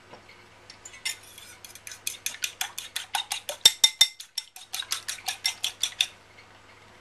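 A fork rapidly beats an egg in a bowl, clicking against its sides.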